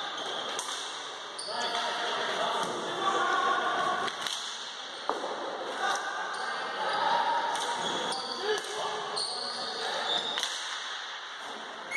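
Players' shoes squeak on a hard floor.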